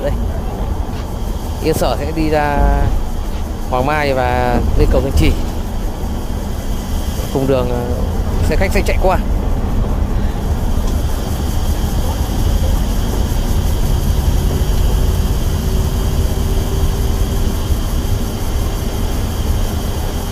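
A bus engine rumbles steadily at speed.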